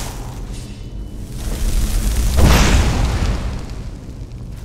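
A fire spell bursts out with a loud whoosh.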